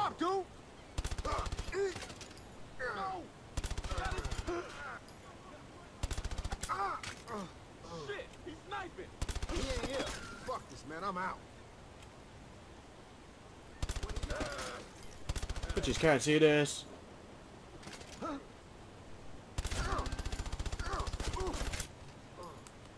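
Rapid bursts of automatic gunfire ring out.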